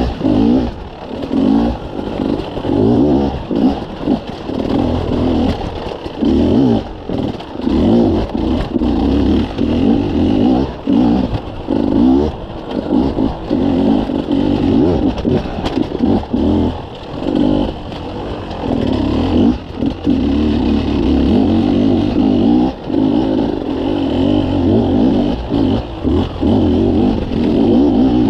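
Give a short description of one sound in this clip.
Tyres crunch and clatter over loose rocks.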